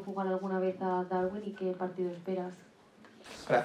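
A man speaks calmly into a microphone close by.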